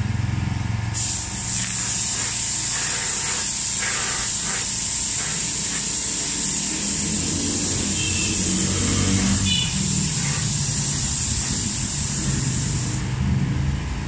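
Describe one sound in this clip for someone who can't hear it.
An air spray gun hisses as it sprays paint.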